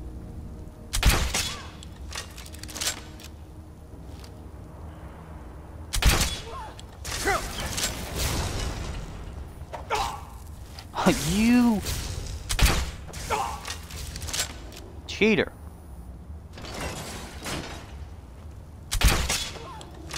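A crossbow fires a bolt with a sharp snap.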